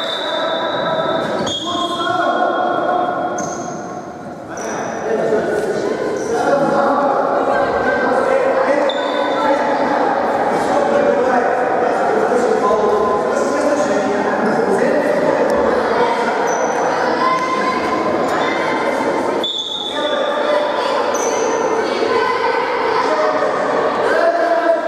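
Young boys shout and call out across a large echoing hall.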